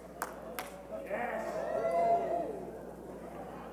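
A crowd cheers and whoops in a large hall.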